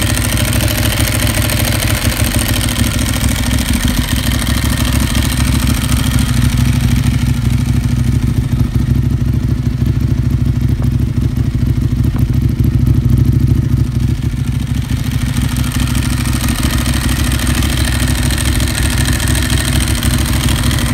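A motorcycle's dry clutch rattles and clatters steadily.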